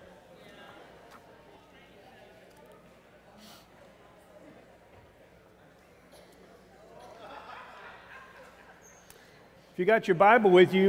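A crowd of people chat quietly in a large room.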